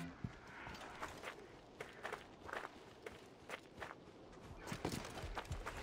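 Footsteps crunch and slide on loose sand.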